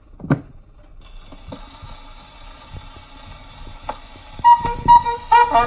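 Old gramophone music plays, thin and scratchy.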